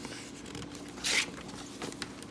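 A page of a book turns with a soft papery rustle.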